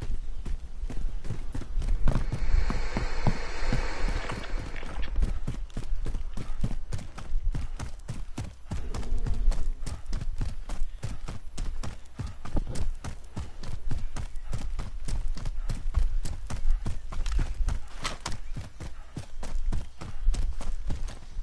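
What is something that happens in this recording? Quick footsteps run steadily over ground.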